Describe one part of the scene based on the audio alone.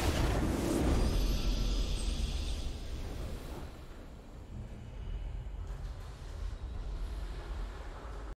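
A triumphant victory fanfare plays.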